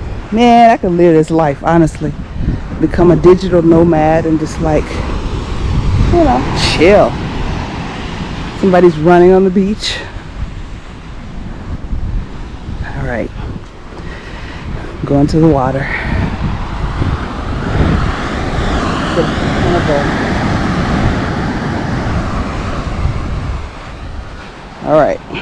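Waves wash gently onto a sandy shore.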